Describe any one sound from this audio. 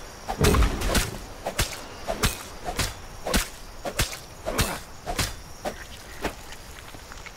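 A hatchet chops repeatedly into flesh with sharp, wet thuds.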